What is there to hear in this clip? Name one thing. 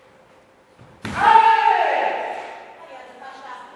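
A man lets out a loud, sharp shout that rings through a large echoing hall.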